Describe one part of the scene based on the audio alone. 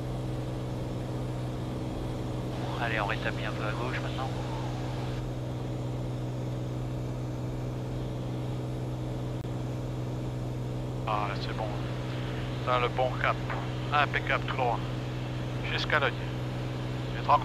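A small plane's engine drones steadily inside the cabin.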